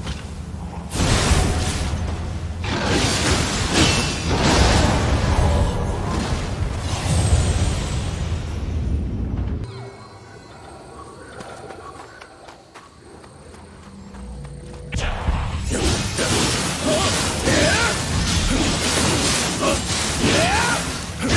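Swords clash and ring with sharp metallic hits.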